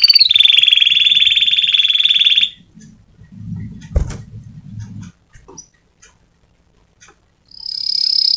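A small bird sings a loud, fast, high trill close by.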